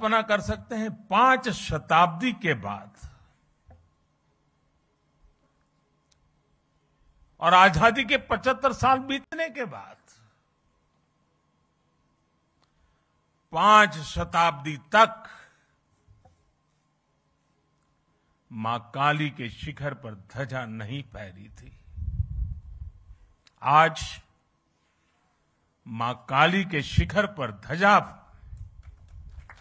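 An elderly man speaks with emphasis into a microphone, in phrases separated by long pauses.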